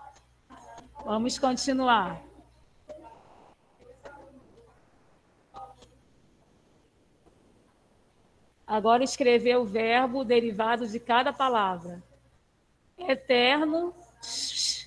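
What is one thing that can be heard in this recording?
A woman speaks calmly close by, her voice slightly muffled.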